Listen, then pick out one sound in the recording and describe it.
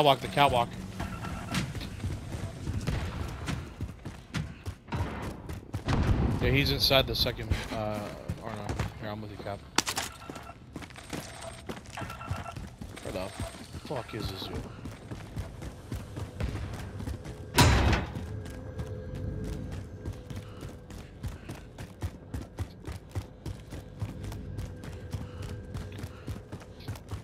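Footsteps thud quickly on hard floors and metal stairs.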